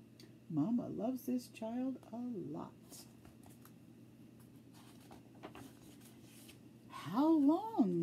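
A middle-aged woman reads aloud expressively, close by.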